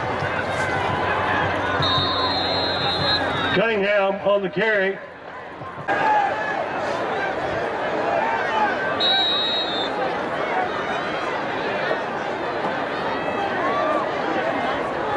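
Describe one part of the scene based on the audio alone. A large outdoor crowd cheers and chatters.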